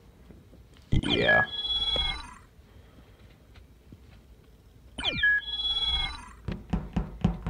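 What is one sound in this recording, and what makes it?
A short electronic chime rings out as a player joins.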